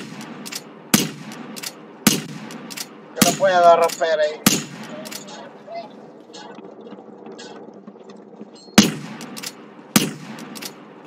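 Rifle shots crack loudly, one at a time, with a short echo.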